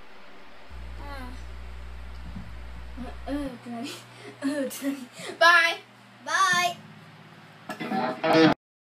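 An electric guitar plays short bent notes.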